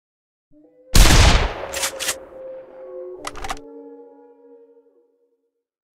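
A rifle fires a single shot that rings on and fades.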